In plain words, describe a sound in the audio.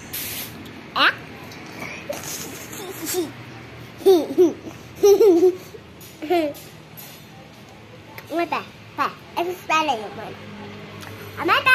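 A young boy talks and laughs playfully close by.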